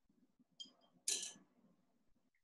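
A small stone drops into a glass of water.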